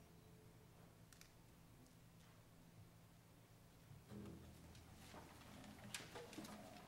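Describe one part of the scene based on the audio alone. A string orchestra plays softly in a large hall.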